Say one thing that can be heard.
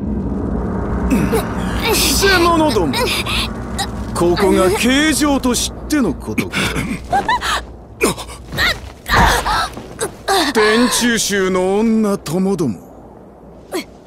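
A huge beast roars and snarls.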